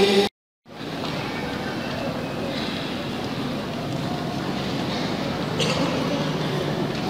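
A man speaks steadily into a microphone, heard through loudspeakers in a large echoing hall.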